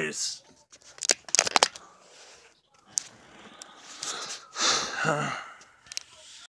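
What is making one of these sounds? Handling noises rustle and knock against the microphone.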